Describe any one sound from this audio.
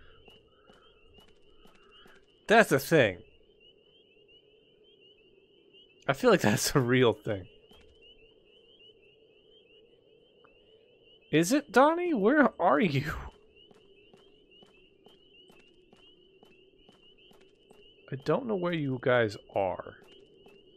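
Footsteps tap on a paved road.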